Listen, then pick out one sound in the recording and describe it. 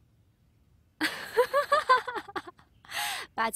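A young woman laughs brightly close by.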